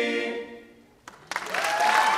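A male choir holds a final chord in a large hall.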